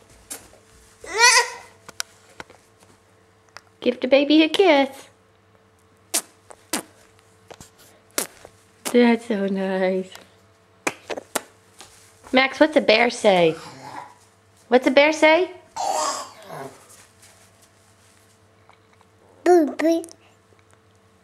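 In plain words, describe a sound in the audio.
A toddler babbles and squeals close by, in short bursts.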